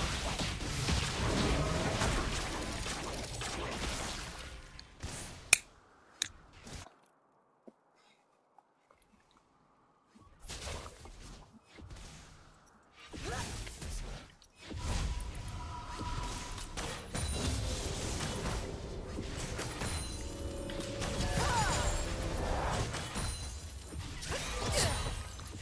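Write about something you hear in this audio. Game combat effects clash, whoosh and zap.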